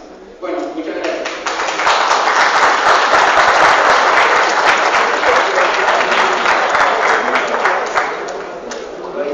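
An audience claps and applauds loudly in a hall.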